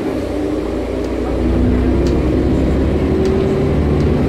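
Loose fittings rattle and click as the bus moves.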